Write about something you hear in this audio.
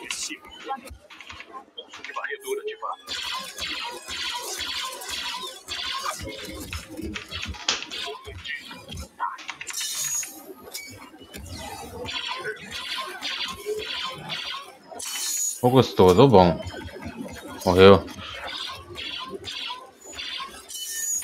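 Laser blasters fire in rapid bursts.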